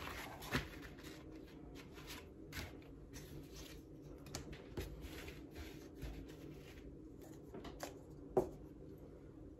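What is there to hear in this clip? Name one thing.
Leather sheets slide and rustle on a cutting mat.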